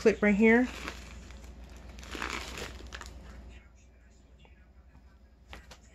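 Fabric rustles softly as hands handle it.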